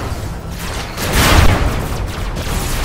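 A loud blast booms and crackles.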